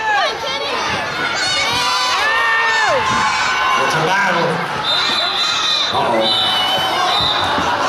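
Children nearby yell and shriek excitedly.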